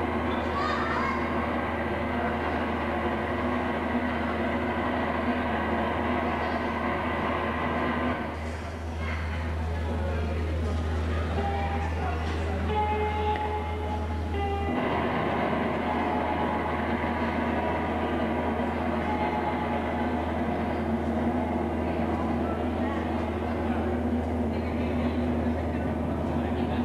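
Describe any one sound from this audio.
A live band plays loud music.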